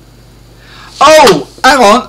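A man shouts in surprise.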